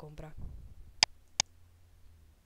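A computer mouse clicks twice.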